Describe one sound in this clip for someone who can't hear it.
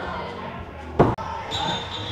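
An axe thuds hard into a wooden target.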